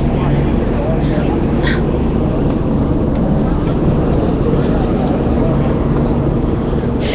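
A crowd of people talks and shouts close by outdoors.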